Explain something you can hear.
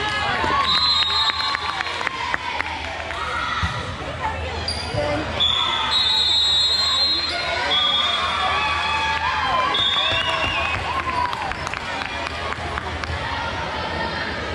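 Shoes squeak sharply on a gym floor in a large echoing hall.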